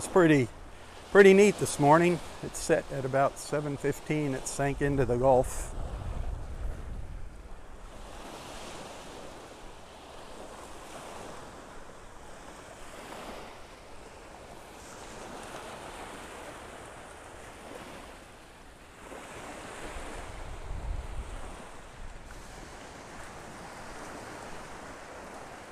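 Small waves wash gently onto the shore and fall back, again and again.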